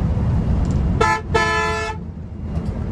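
A bus horn blares in a short musical blast.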